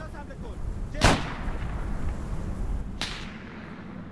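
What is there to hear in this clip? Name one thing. Gunshots crack loudly and echo across open ground.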